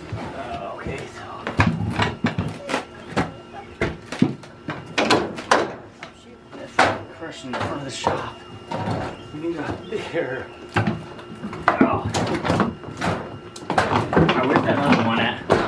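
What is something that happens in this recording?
Metal clanks and knocks as an engine block is moved on a wheeled dolly.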